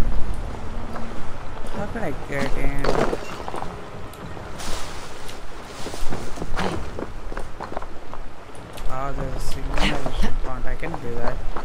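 Footsteps scuff and tap across roof tiles.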